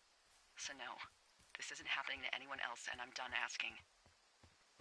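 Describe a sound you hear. A woman talks calmly over a crackly handheld radio.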